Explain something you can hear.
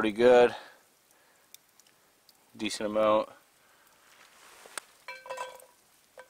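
Chopped garlic drops into a hot frying pan.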